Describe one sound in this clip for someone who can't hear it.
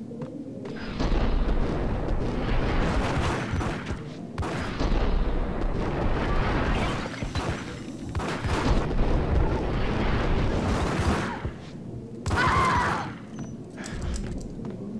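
Rapid gunshots fire in bursts in an echoing room.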